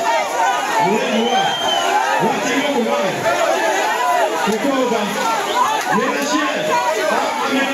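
A young man shouts into a microphone over loudspeakers.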